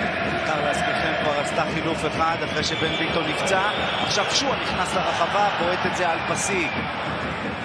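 Whistles shrill from the crowd.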